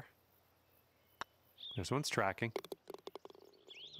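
A putter softly taps a golf ball.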